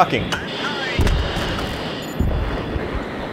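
Explosions boom with deep thuds.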